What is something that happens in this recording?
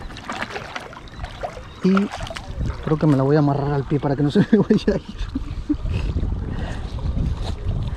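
Water laps gently against rocks close by.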